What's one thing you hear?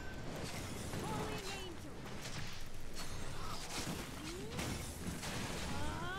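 Ice crystals burst and shatter.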